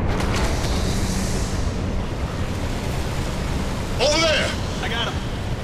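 Molten lava pours down with a deep, steady roar.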